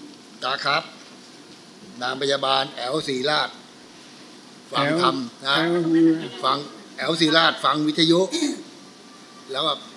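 A middle-aged man talks nearby.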